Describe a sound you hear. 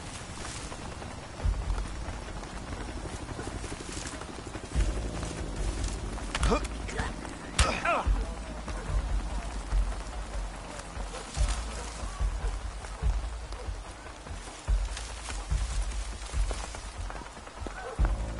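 Footsteps crunch and rustle through undergrowth.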